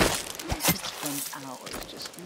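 A blade stabs into flesh with a wet thud.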